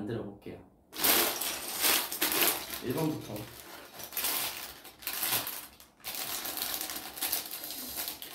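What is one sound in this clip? A plastic bag crinkles loudly.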